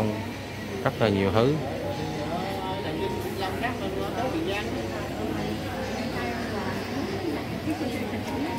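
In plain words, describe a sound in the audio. Several adults talk quietly nearby.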